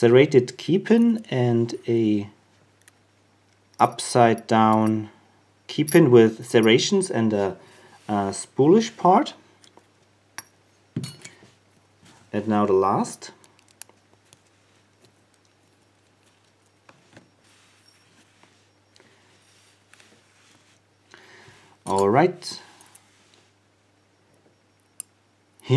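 Small metal parts click softly as they are handled with tweezers.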